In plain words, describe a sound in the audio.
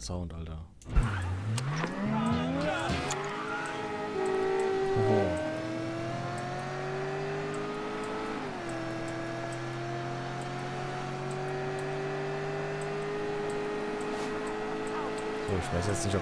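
A car engine starts, revs up and roars steadily as the car drives off.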